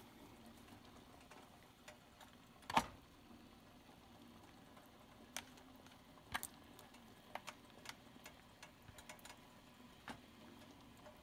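Eggs plop into boiling water one by one.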